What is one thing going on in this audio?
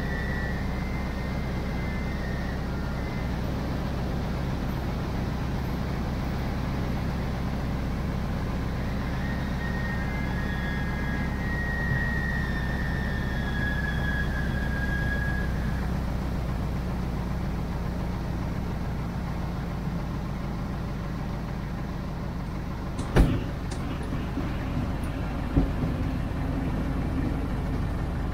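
A small propeller plane's engine drones steadily from inside the cabin.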